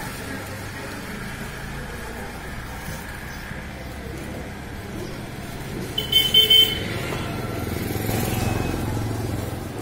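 A knife slices through meat.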